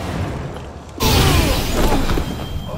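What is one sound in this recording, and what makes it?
A man is flung back with a loud whoosh and thuds onto the ground.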